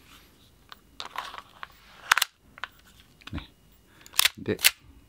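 Metal parts of a pistol click and clack sharply as they are handled.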